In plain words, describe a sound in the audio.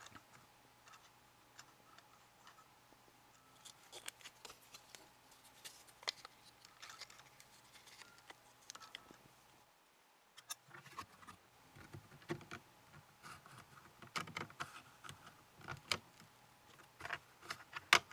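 Plastic gears click and rattle as a hand turns them.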